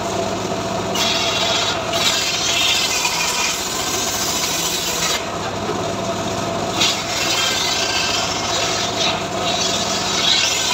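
A saw cuts through wood with a loud whine.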